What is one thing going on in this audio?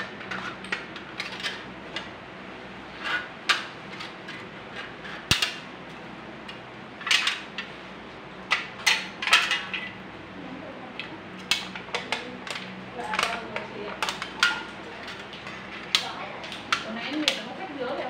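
Scissors snip through a thin aluminium can.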